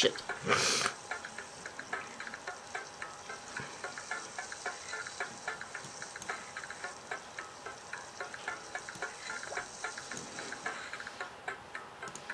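A sausage sizzles on a hot grill.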